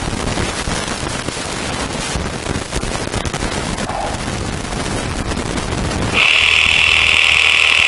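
A chainsaw cuts into a tree trunk.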